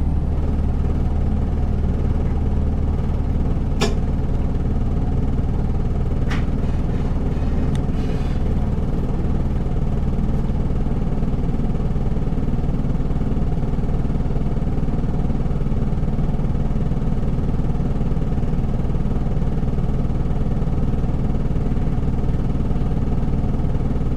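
A diesel city bus idles, heard from inside the bus.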